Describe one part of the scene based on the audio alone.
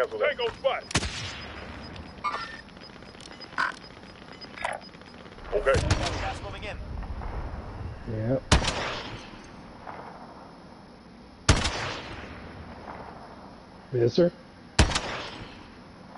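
Sniper rifle shots crack loudly and echo away.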